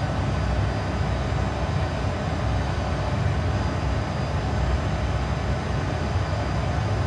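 Aircraft engines drone steadily with a low rumbling roar.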